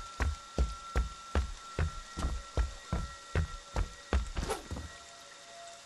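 Heavy footsteps thud at an even pace.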